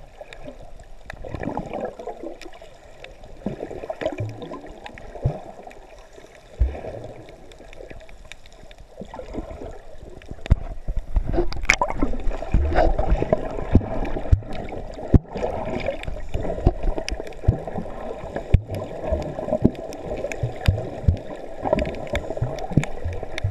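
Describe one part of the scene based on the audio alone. Underwater bubbles rush and gurgle close by.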